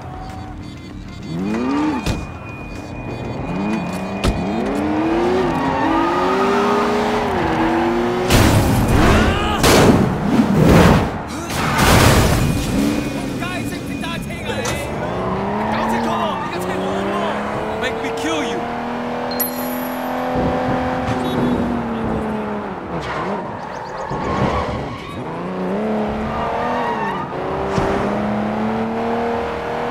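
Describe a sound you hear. A car engine revs and roars as it speeds up and slows down.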